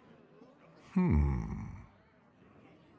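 A game sound effect booms as a card is played.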